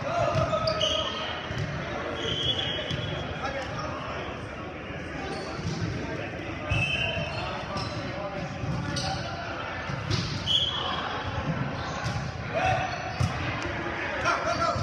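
Men call out to each other in a large echoing gym.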